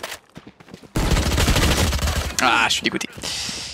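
Rapid gunshots fire in a quick burst.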